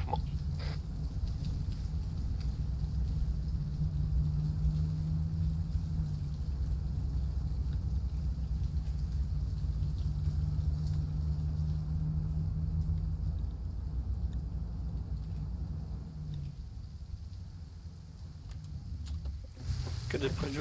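A vehicle engine rumbles low and steady while driving over rough ground.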